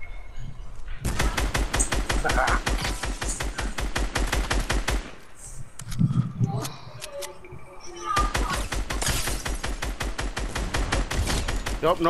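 A rapid-fire gun shoots in long, fast bursts.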